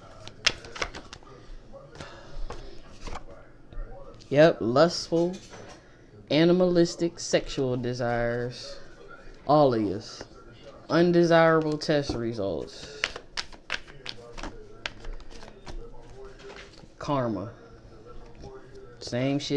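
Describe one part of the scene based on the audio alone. Hands flick and shuffle through a stack of cards close by.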